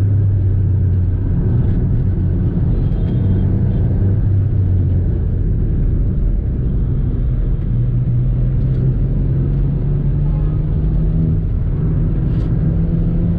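A car engine hums steadily from inside the cabin, its pitch shifting as the car changes speed.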